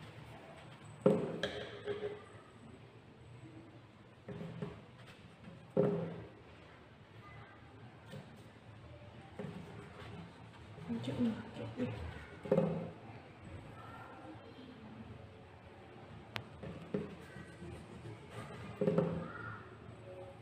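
Paper rustles and taps on a wooden table.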